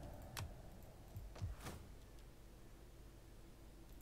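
Short interface clicks sound as a menu opens.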